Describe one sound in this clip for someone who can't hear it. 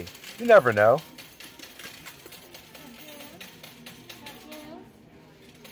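A slot machine's reels spin with a rapid clicking.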